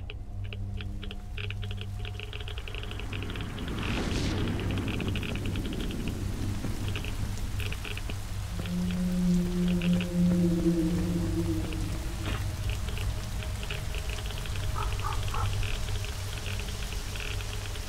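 Footsteps clunk on wood.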